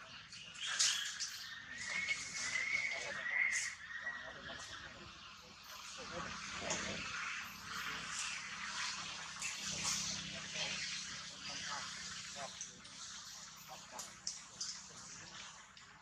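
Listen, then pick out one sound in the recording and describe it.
A monkey smacks its lips softly.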